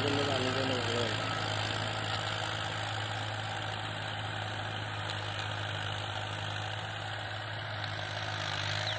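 A tractor engine hums steadily close by.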